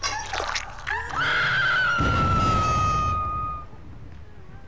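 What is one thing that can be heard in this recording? A young woman screams loudly nearby.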